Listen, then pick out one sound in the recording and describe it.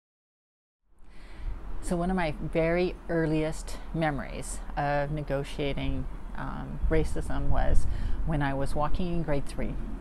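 A middle-aged woman speaks calmly and close up.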